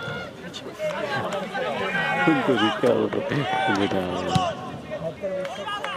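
Men cheer and shout loudly.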